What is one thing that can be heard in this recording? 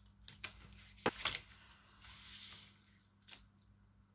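Gloved hands rub and press on a book cover.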